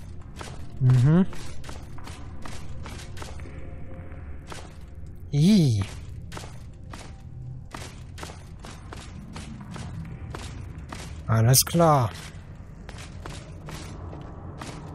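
Footsteps tread steadily on stone in an echoing cave.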